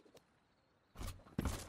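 A hammer knocks against wood with heavy thuds.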